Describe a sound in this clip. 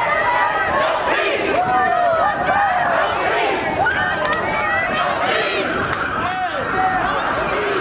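A large crowd of men and women chants and shouts loudly outdoors.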